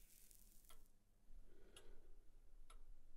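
A man exhales a long breath of smoke.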